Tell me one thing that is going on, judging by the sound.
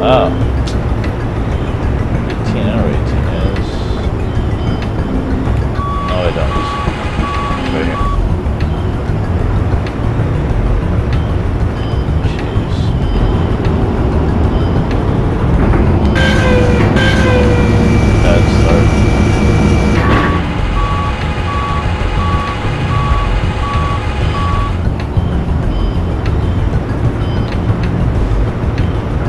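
A forklift engine rumbles steadily as it drives.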